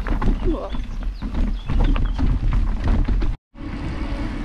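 Bike tyres rumble and crunch over a rough dirt trail.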